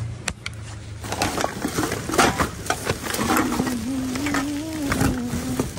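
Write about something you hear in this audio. Plastic bags rustle and crinkle as hands rummage through rubbish.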